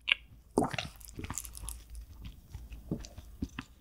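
A spoon scrapes against a bowl of rice.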